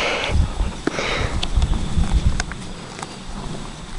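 A horse tears at grass and chews.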